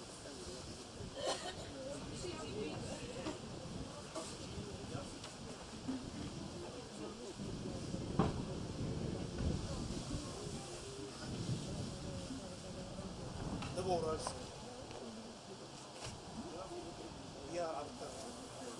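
An elderly man speaks through a microphone and loudspeakers, outdoors.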